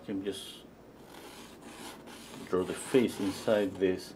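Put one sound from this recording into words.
A brush scrapes softly across a canvas.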